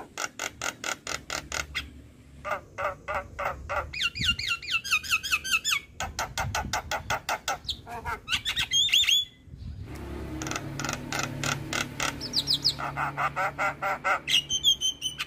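A songbird sings loud, rapid, chattering trills and whistles up close.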